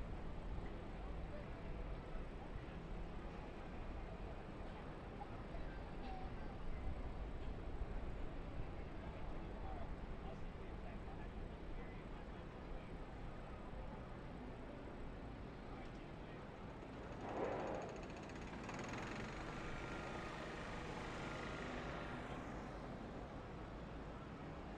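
Truck engines idle with a low steady rumble.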